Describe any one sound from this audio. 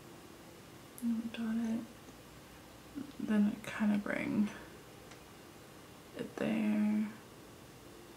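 A young woman speaks calmly and close by, in short bursts.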